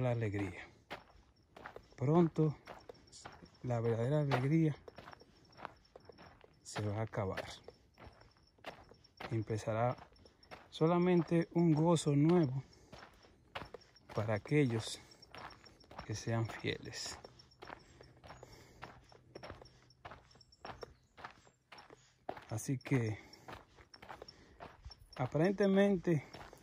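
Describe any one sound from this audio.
Footsteps crunch on a dry dirt path scattered with leaves.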